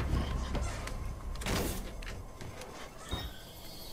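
A car door clunks shut.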